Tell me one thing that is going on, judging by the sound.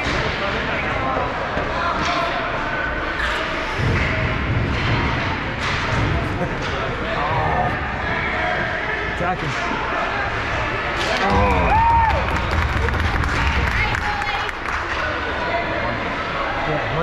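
Hockey sticks clack on pucks and ice.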